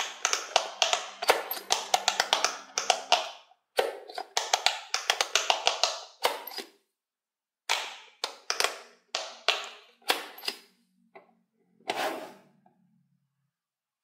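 Fingers rapidly press the clicking buttons of a toy, making quick pops.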